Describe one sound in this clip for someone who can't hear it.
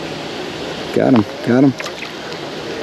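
A fishing reel whirs briefly as a line is cast.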